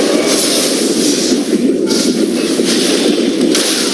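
Magic spells whoosh and crackle in a video game fight.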